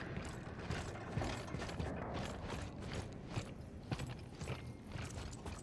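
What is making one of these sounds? Heavy boots thud on a gritty floor in slow footsteps.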